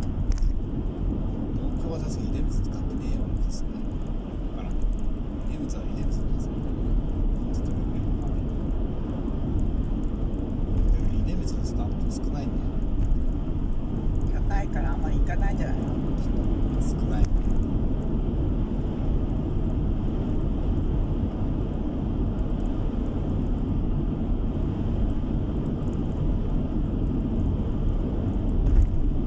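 A vehicle's engine hums steadily as tyres roll along a road.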